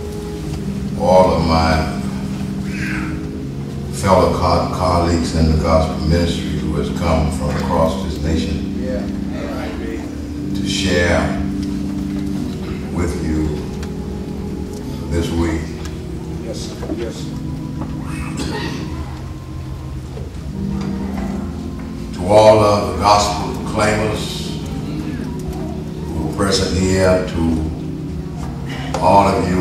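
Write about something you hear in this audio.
An elderly man speaks slowly and solemnly into a microphone in a large echoing room.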